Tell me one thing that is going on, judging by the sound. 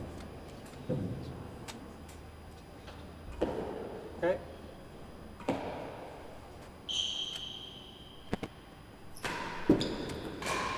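A ball thuds against a wall and bounces on the floor.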